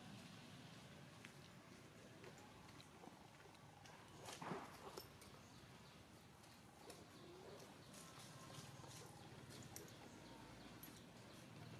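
Dry leaves rustle as small monkeys scramble about.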